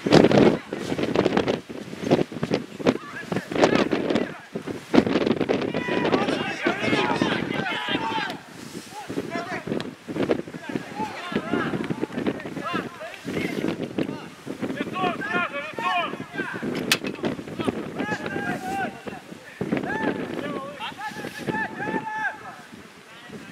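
Young men shout to each other across an outdoor football pitch.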